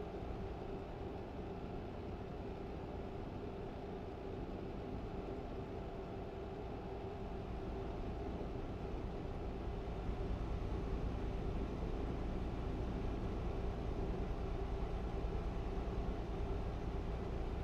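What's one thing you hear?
A truck engine drones steadily, growing slightly louder.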